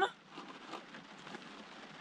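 A spoon scrapes inside a plastic cup.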